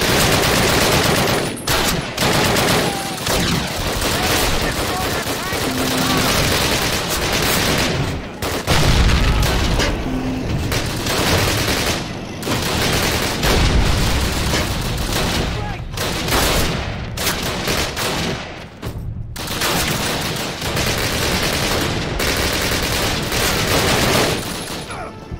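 A heavy machine gun fires in long rapid bursts.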